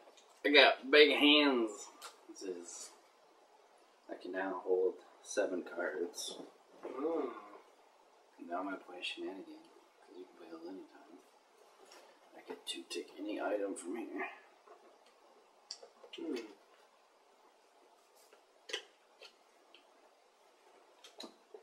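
Cards are laid down on a table with soft taps.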